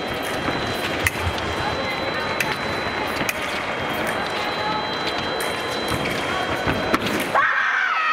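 Fencing blades clash and click sharply.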